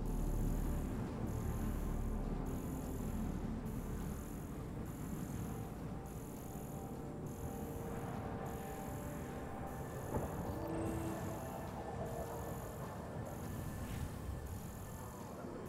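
A scanning device hums with a steady, repeating high pulse.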